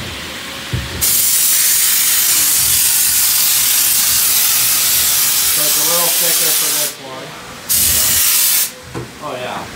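A paint spray gun hisses loudly in long bursts.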